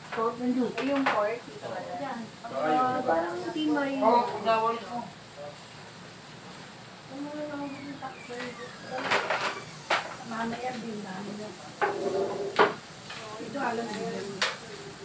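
Metal utensils clink against a pan.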